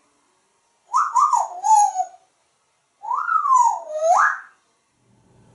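A parrot whistles in sliding tones.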